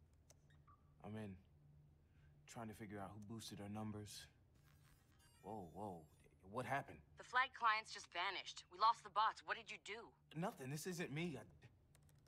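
A young man speaks with rising surprise and agitation.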